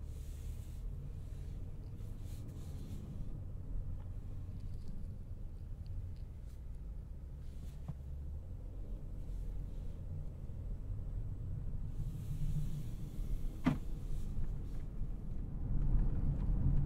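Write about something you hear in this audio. A twin-turbo W12 luxury sedan rumbles low from inside the cabin at low speed.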